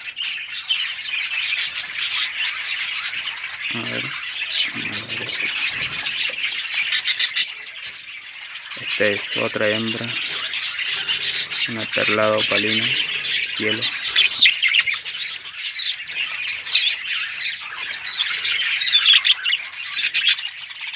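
Many young birds chirp and cheep shrilly close by.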